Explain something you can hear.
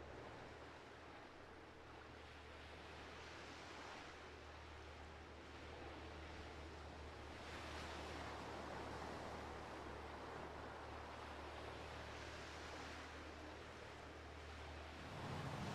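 Water laps and splashes against a large ship's hull.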